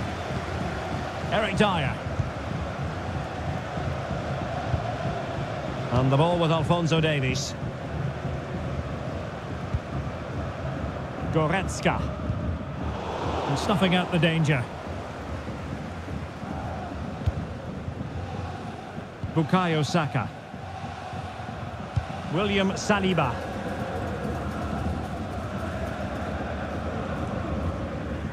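A large stadium crowd murmurs and cheers steadily in the distance.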